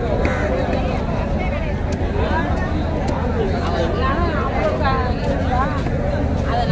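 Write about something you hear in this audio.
A knife chops through fish with sharp knocks on a hard surface.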